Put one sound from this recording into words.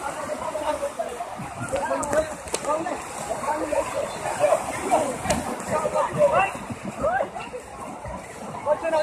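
Shallow waves wash against the shore.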